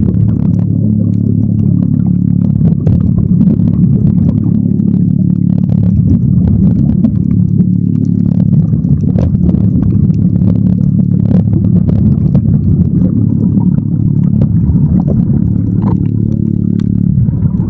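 Water rushes and rumbles in a low, muffled way underwater.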